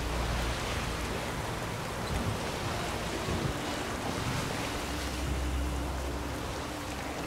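Strong wind roars.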